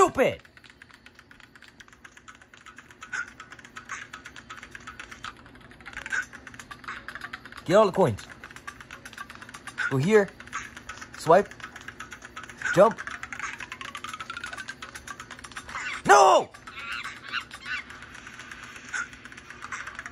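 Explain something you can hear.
Sound effects from a mobile game play through a small phone speaker.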